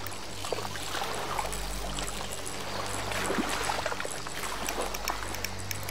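A fishing reel clicks steadily as line is wound in.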